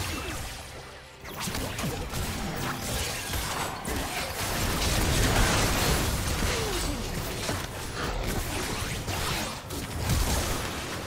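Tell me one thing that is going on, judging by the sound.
Game spell effects whoosh and crackle as characters fight.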